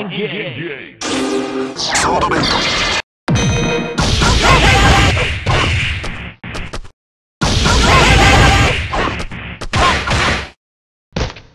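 Energy bursts whoosh and explode loudly.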